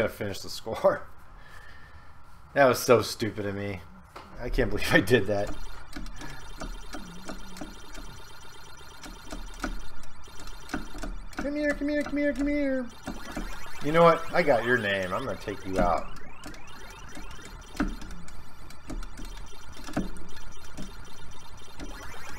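Ms. Pac-Man arcade game sound effects chirp and warble.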